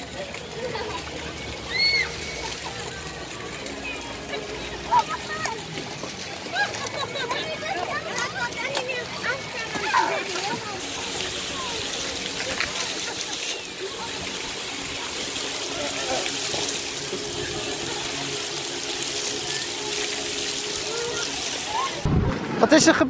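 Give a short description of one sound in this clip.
Young children shout and chatter playfully nearby.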